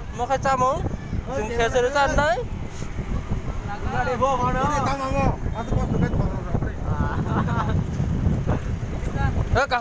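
Men talk loudly and with animation close by, outdoors.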